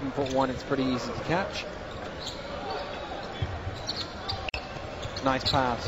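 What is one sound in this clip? A crowd murmurs steadily in a large echoing arena.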